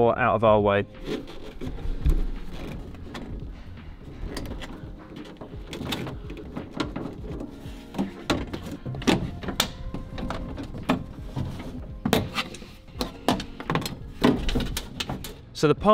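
Plastic clips and metal parts click and knock as a door panel is worked on.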